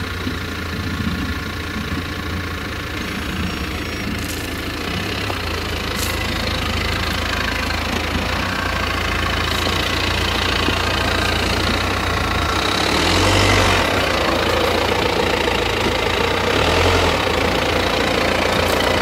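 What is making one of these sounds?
Beets tumble and rumble off a conveyor onto a heap.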